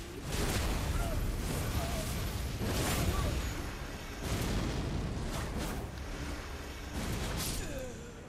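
Magic spells burst and whoosh again and again.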